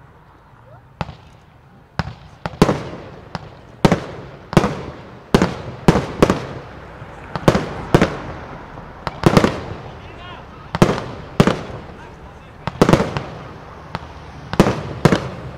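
Firework shells pop and crackle in quick succession.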